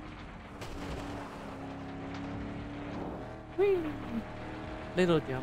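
Tyres rumble over a rough dirt track.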